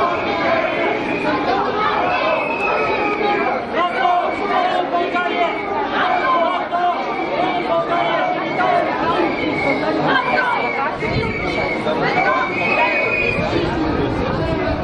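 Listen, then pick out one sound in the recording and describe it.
A crowd of men and women chants and shouts outdoors.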